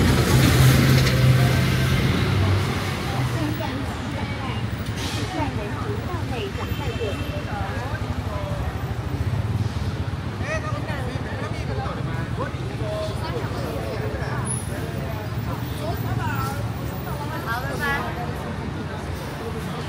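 A crowd of people chatters on a busy street outdoors.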